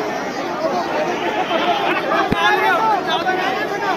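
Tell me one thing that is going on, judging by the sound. Young men cheer and whoop loudly close by.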